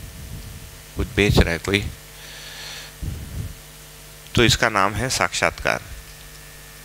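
A man speaks into a headset microphone in a calm, lecturing voice.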